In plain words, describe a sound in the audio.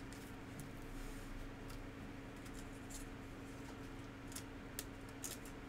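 Plastic card wrappers crinkle and rustle in hands.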